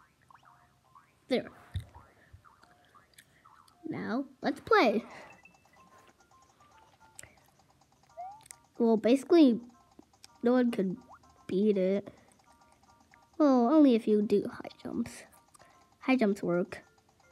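Video game music plays quietly from a small speaker.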